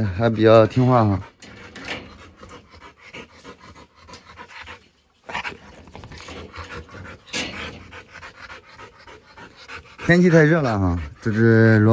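A dog laps water from a metal bowl.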